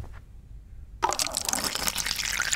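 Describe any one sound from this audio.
Hot water pours from a dispenser into a cup.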